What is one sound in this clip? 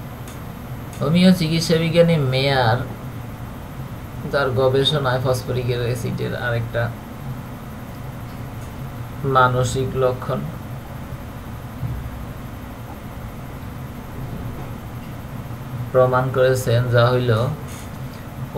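A man speaks close to a microphone in short, calm phrases.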